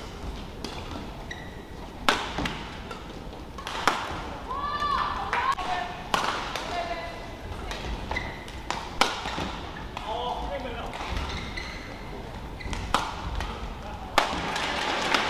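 Rackets smack a shuttlecock back and forth in a fast rally.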